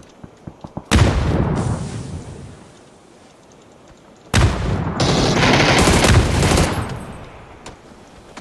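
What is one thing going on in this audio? A smoke grenade hisses loudly as it releases smoke.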